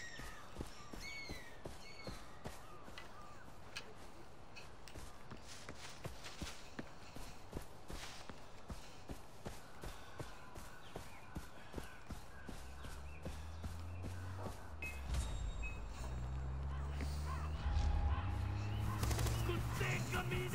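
Footsteps swish and crunch through tall grass.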